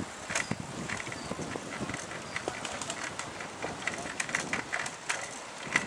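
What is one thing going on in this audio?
Bicycle tyres rattle over a bumpy brick path.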